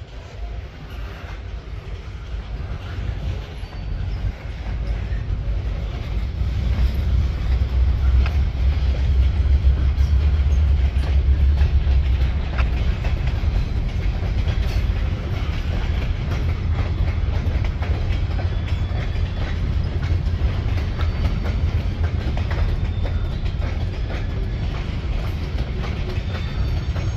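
A long freight train rumbles past, its wheels clacking over rail joints.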